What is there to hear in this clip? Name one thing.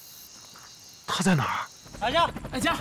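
A young man speaks in a shaken voice.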